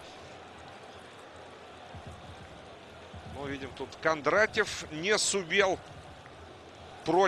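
A large stadium crowd murmurs steadily in the distance.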